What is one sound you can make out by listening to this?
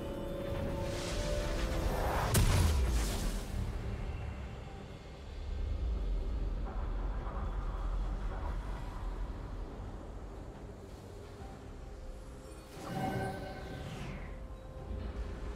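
Game spell effects whoosh and crackle in short bursts.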